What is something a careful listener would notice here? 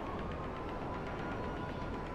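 A motorcycle engine idles with a low hum.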